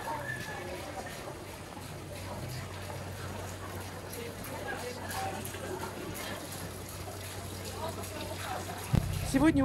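Water splashes and trickles off a turning water wheel.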